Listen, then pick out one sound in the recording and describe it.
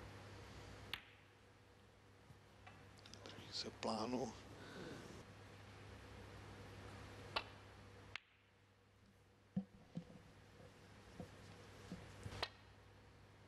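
Snooker balls clack against each other.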